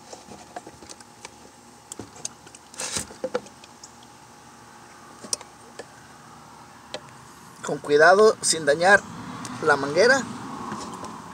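Pliers click and scrape against a plastic fuel line fitting.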